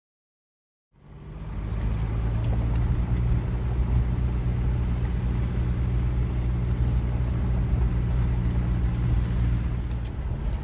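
Tyres roll over a gravel road.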